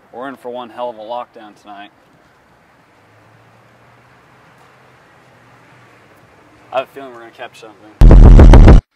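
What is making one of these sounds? A young man speaks casually, close by.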